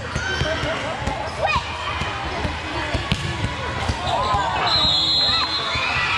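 A volleyball is bounced and struck with a slap.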